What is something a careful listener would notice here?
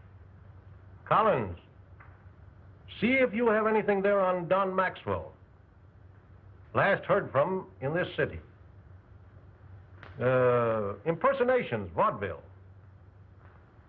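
An elderly man talks into a telephone with animation.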